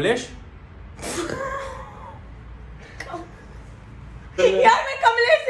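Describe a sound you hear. A young woman laughs loudly up close.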